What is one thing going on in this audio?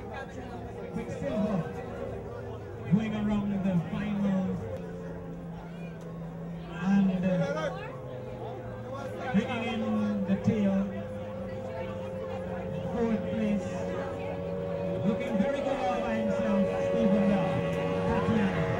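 An outboard motor revs up and down repeatedly.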